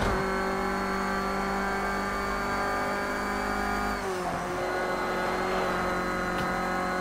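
A car engine roars steadily at high speed, its pitch dropping briefly as the car slows for a bend.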